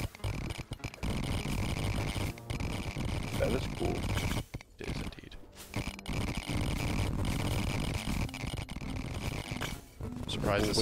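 Rapid laser zaps and magic hits crackle continuously.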